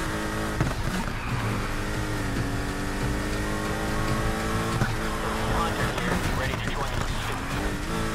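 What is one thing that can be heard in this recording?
Tyres screech as a car drifts through a turn.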